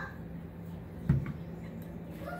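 A glass bottle is set down on a table with a thud.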